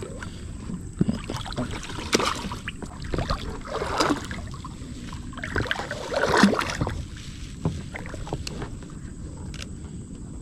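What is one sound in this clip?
Water splashes and drips as a wet net is pulled up out of a lake.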